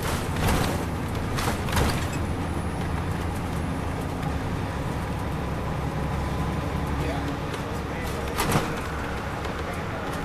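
Tyres rumble on the road beneath a coach, heard from inside.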